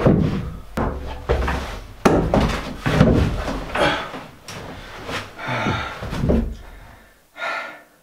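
Wooden boards thump and creak as a man climbs onto a high bench.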